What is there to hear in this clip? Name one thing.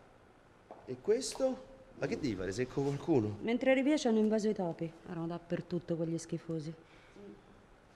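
A woman speaks quietly and tensely close by.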